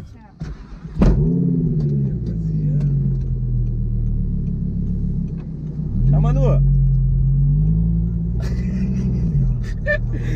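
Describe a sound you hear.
A car engine starts with a roar and then idles with a low rumble.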